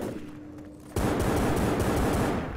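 A shotgun fires with a loud blast.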